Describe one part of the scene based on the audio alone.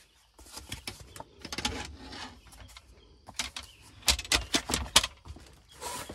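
Wooden slats clack together as a folding rack is closed.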